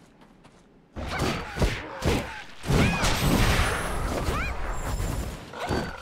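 Weapons clash and slash with sharp, loud impacts.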